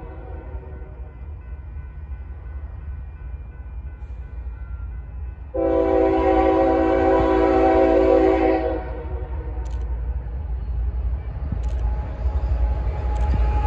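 Diesel freight locomotives rumble as they approach.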